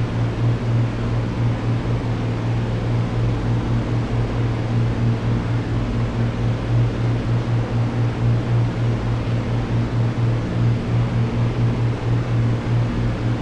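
An aircraft engine drones loudly and steadily, with a low, throbbing hum.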